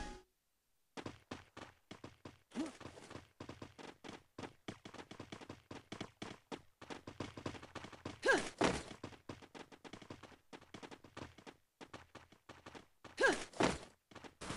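Footsteps run.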